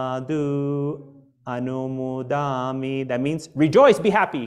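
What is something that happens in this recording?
A man chants in a steady, drawn-out voice, close to a microphone.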